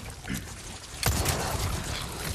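A gunshot rings out loudly.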